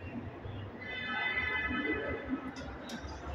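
An elevator chimes with a ringing tone.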